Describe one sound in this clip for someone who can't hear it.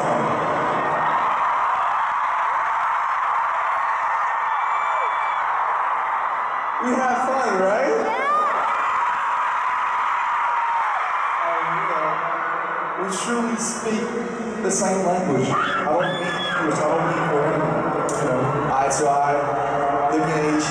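A crowd screams and cheers loudly in a large arena.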